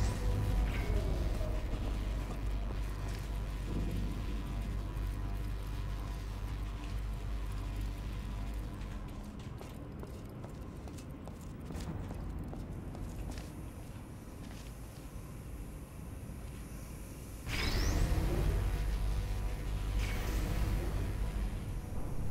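Electric sparks crackle and buzz.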